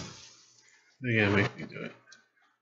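A man speaks casually into a microphone, close by.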